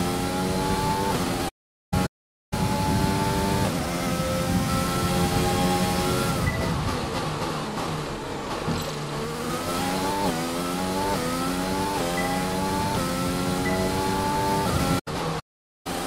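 A racing car engine roars loudly, its pitch rising through the gears and dropping as it slows for a corner.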